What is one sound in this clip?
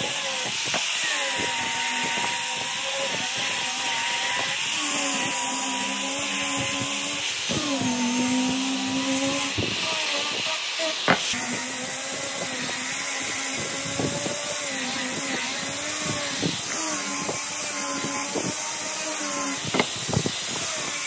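A sanding disc rasps against wood.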